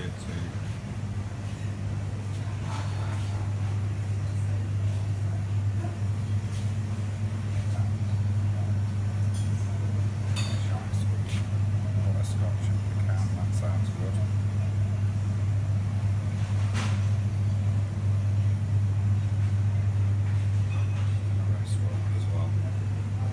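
Refrigerated display cases hum low and steadily.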